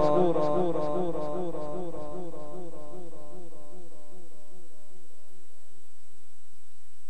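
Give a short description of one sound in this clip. A man chants slowly through a loudspeaker with a long echo.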